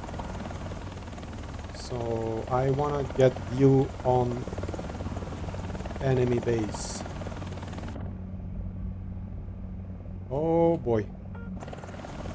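A helicopter's rotor and engine drone steadily.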